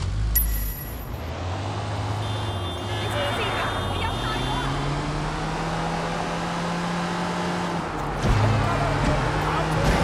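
A van engine revs and hums as it drives along.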